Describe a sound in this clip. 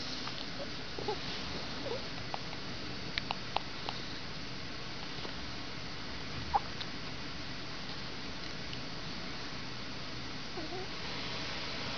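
A newborn baby grunts and squeaks softly in its sleep.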